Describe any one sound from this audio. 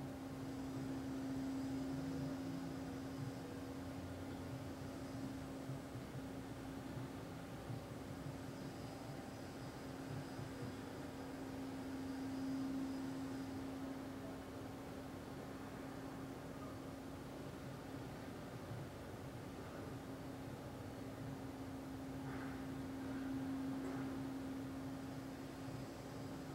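A man chants a long, low, steady tone close by, swelling and fading with each breath.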